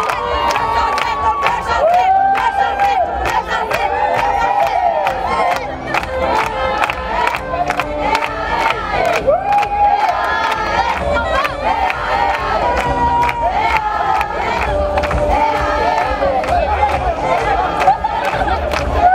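A crowd of young women claps in rhythm.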